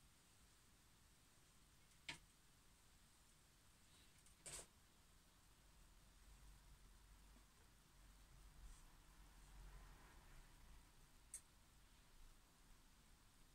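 A paintbrush dabs and brushes softly on canvas.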